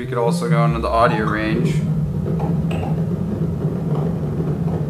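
A synthesizer drones with a rough, rumbling tone.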